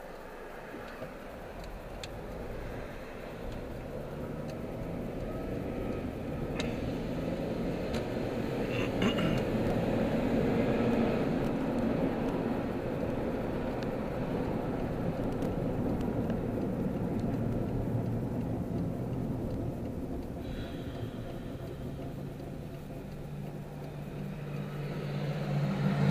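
A car drives on a paved road, heard from inside.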